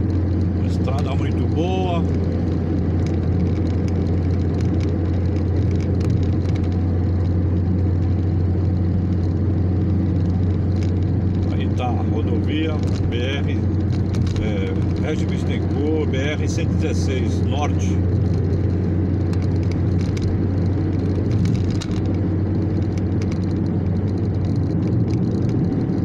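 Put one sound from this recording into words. A car's engine and tyres on asphalt drone steadily from inside the cabin at highway speed.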